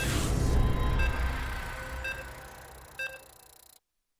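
A game's countdown beeps once a second.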